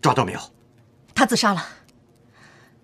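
A young woman speaks urgently.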